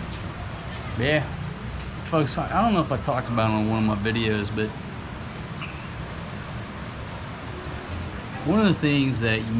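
A middle-aged man talks calmly and close by.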